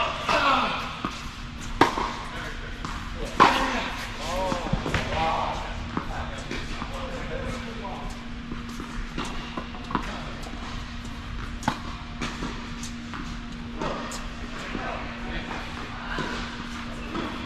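Tennis balls bounce on a hard court.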